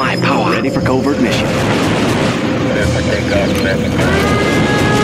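Jet planes roar past amid battle noise.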